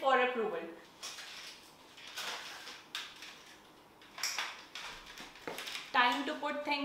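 A tripod's legs rattle and clack as it is folded.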